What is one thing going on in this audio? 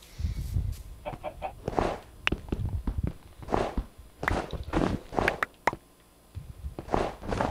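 A shovel digs into earth with repeated crunching thuds.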